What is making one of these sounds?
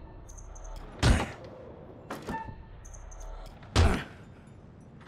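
Wooden knocks sound as fists strike a training dummy.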